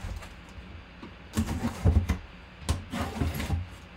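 A utility knife slices through packing tape on a cardboard box.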